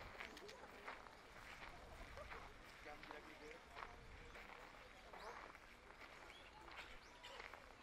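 Men and women chatter quietly in the distance, outdoors.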